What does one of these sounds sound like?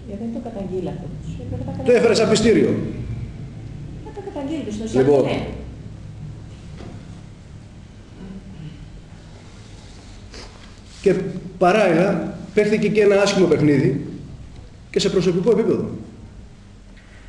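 A middle-aged man speaks calmly into microphones, reading out at times.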